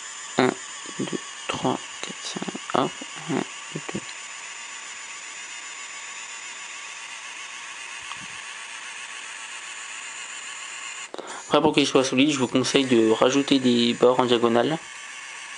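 A small electric pen motor whirs steadily.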